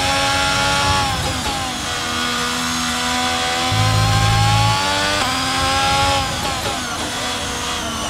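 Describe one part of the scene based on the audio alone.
A Formula One car's engine drops in pitch as it downshifts under braking.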